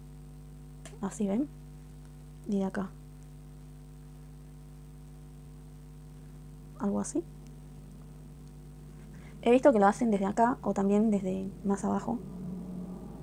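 A young woman talks calmly and close to a clip-on microphone, in short bursts.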